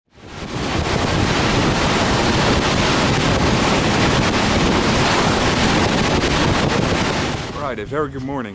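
Water rushes past the hull of a fast-moving boat.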